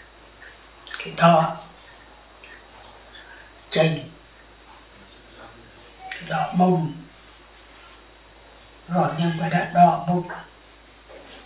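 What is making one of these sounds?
An elderly man speaks slowly in short phrases, close by.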